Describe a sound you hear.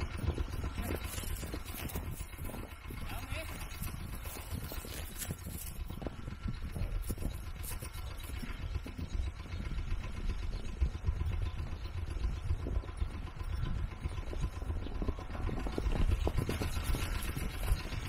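Horses' hooves thud on grass as the horses gallop.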